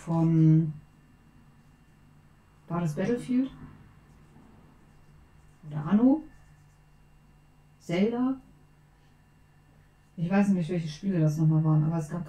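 A young woman speaks in short, animated bursts close to a microphone.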